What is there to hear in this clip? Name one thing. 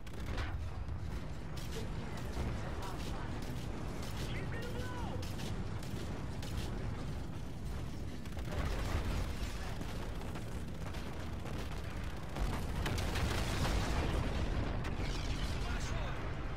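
A spacecraft engine rumbles steadily.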